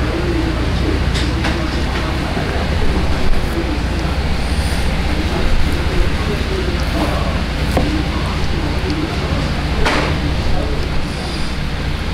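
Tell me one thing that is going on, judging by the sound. A knife slices through meat and fat.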